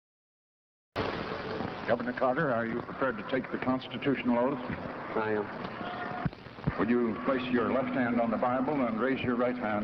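A man speaks calmly through a microphone outdoors.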